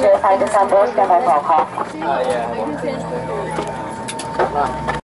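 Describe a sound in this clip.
An airliner's engines hum steadily, heard from inside the cabin.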